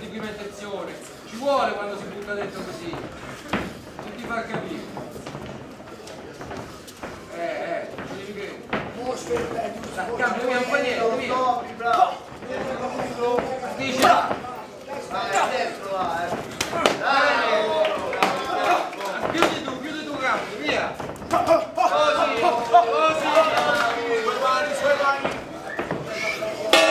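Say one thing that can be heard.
A crowd of men shouts and cheers in a room.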